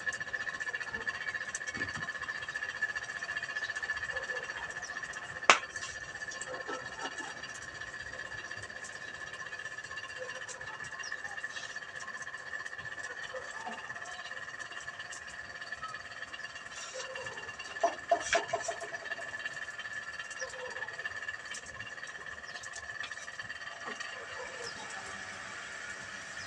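A fire crackles and hisses as dry straw burns outdoors.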